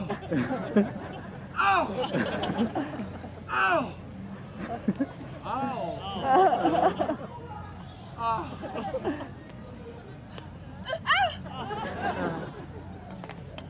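A young woman shouts lines loudly with animation.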